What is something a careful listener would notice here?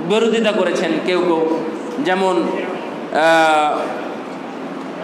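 A man chants into a microphone, heard through loudspeakers.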